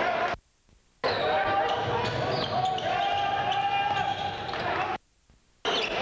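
A crowd of spectators cheers and chatters in a large echoing gym.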